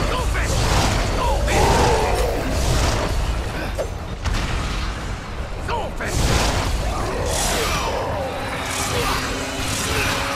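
Blows thud against bodies in a fight.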